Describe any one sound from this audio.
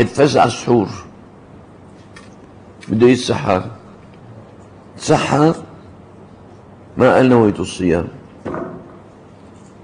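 An elderly man speaks calmly into a microphone in short phrases, with pauses between them.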